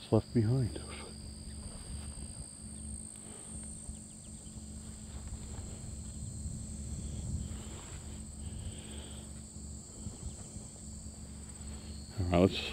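Wind rustles through tall grass outdoors.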